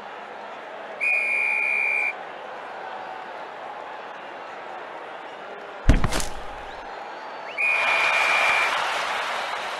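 A referee's whistle blows with a long, shrill tone.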